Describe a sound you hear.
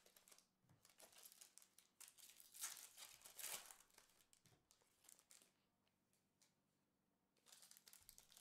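Cards shuffle and tap on a table.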